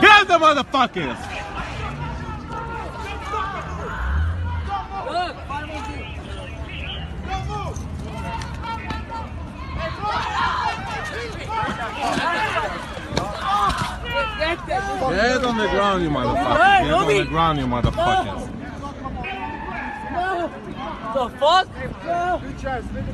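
Men shout excitedly close by.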